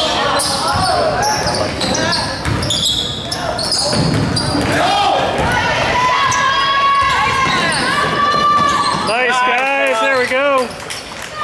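Spectators talk and call out in an echoing gym.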